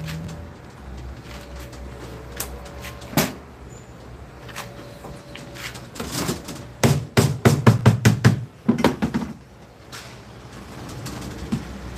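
Copper tubing rattles and scrapes as a man bends it by hand.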